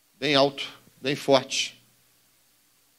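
A man speaks briefly and calmly into a microphone.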